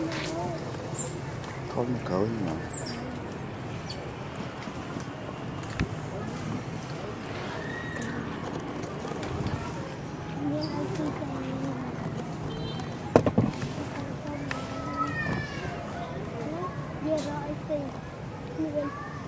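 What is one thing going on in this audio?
Birds chirp and call in the trees.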